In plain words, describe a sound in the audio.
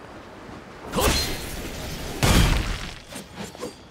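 A loud magical blast crashes down with a booming rush.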